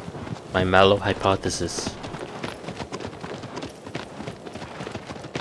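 A horse gallops with hooves pounding on the ground.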